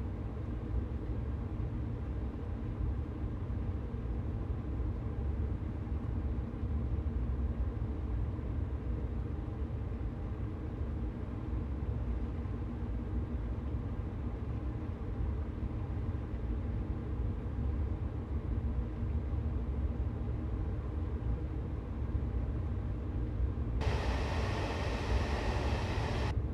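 A train rumbles low and steady along the tracks.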